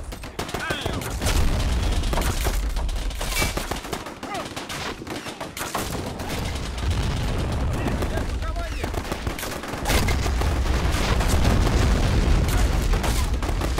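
Gunfire cracks in short, sharp bursts.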